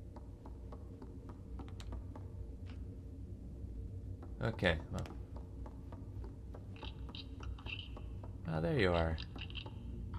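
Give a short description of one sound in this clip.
Small footsteps patter on wooden floorboards.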